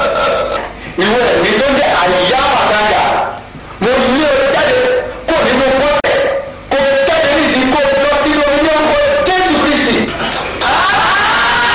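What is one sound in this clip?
A young man speaks loudly and with animation.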